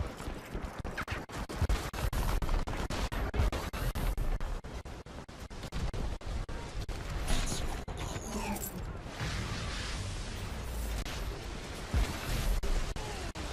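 Rapid gunshots crack from a game, loud and close.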